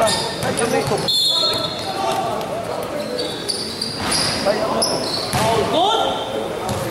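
Spectators chatter and call out in an echoing hall.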